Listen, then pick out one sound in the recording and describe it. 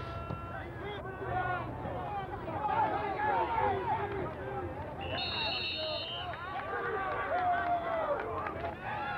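A crowd of young men shouts and cheers outdoors.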